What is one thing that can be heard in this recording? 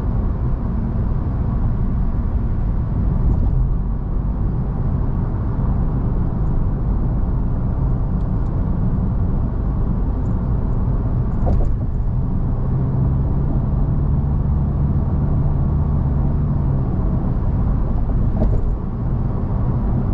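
A car's engine and tyres rumble steadily on a highway from inside the car.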